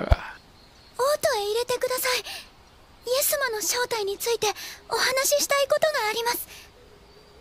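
A creature speaks in a high, squeaky voice with animation, close up.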